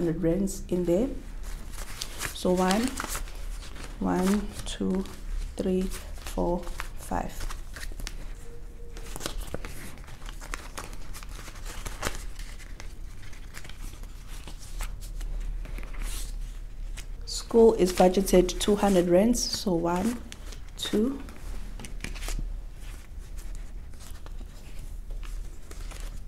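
Banknotes rustle as they are counted.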